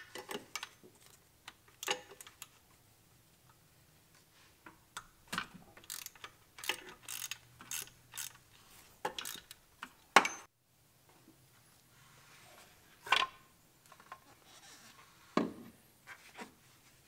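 Metal tools clink and clack against engine parts.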